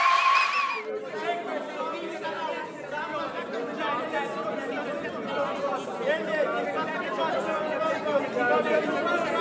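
A group of men and women talk and laugh together nearby.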